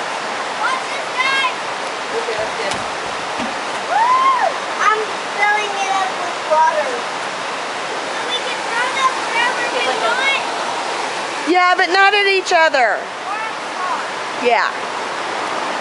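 A young girl calls out and sings in a high voice nearby.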